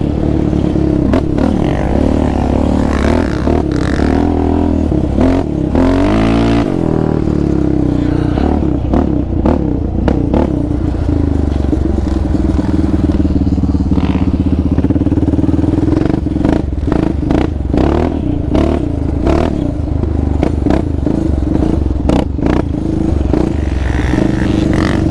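Knobby tyres thud and crunch over bumpy dirt.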